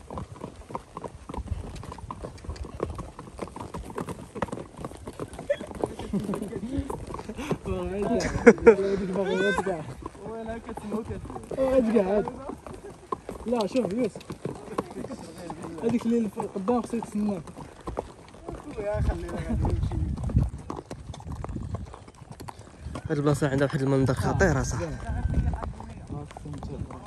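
Horse hooves clop slowly on a dirt path.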